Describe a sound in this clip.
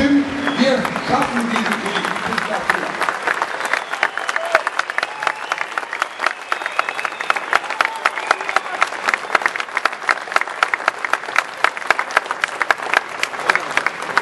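A large crowd claps and applauds.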